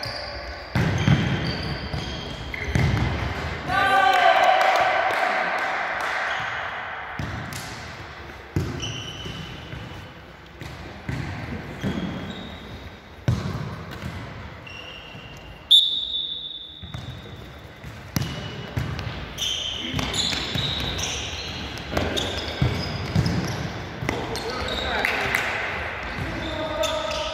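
A ball is kicked with sharp thuds that echo around a large hall.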